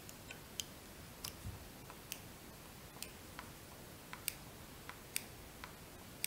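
Small scissors snip with light clicks.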